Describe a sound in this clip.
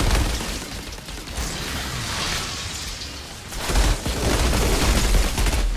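A gun fires rapid bursts of shots.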